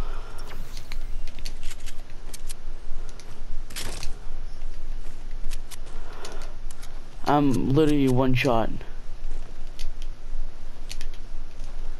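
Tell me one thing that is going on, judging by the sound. Footsteps patter quickly over grass and wooden steps.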